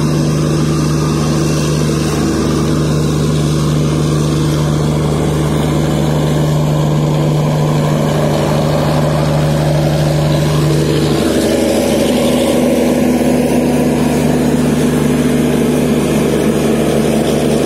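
A generator engine hums loudly and steadily.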